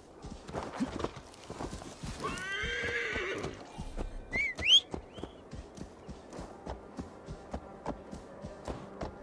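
Horse hooves thud steadily on snow.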